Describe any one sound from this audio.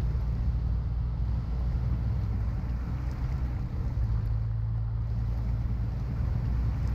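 Mud squelches and splashes under the truck's tyres.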